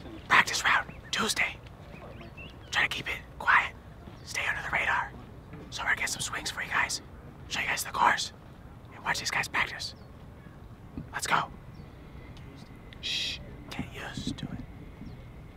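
A young man speaks close to the microphone outdoors.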